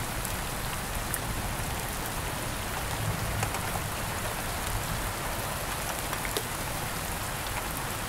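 Thunder rumbles in the distance.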